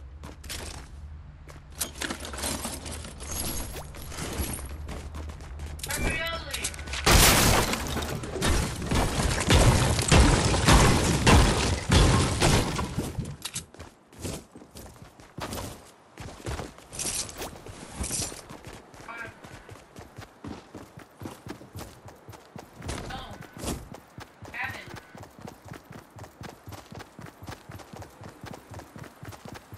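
Footsteps patter quickly and steadily.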